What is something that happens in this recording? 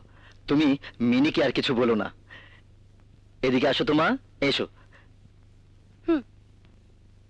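A woman speaks tensely, close by.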